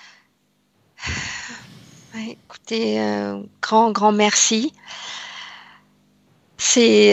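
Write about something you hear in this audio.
An older woman talks with animation over an online call.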